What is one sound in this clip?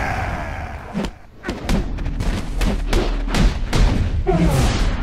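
Punches and body slams thud heavily.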